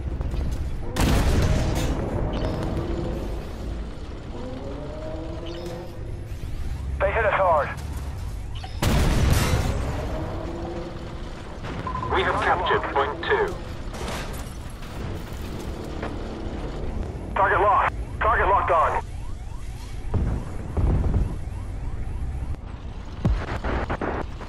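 Tank cannon shots boom loudly.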